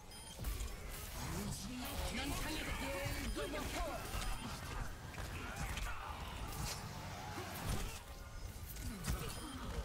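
Electric zaps crackle and buzz from a game weapon.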